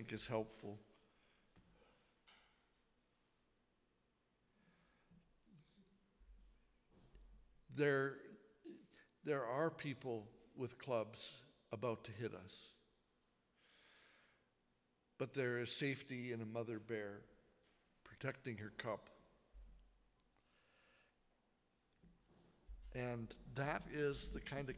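An older man speaks with animation into a microphone.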